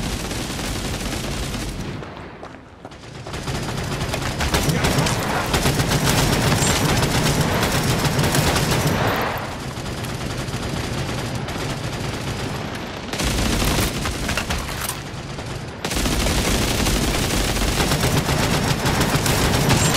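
Submachine guns fire in rapid bursts.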